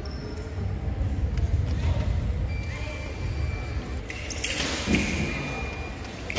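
Fencers' shoes shuffle and tap on the floor.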